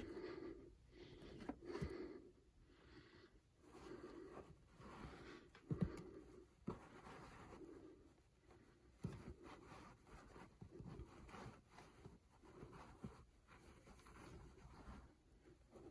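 A hand brushes and taps against fabric caps.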